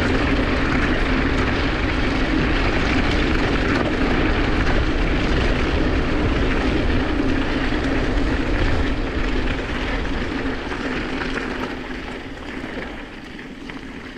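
Wind buffets loudly past the rider.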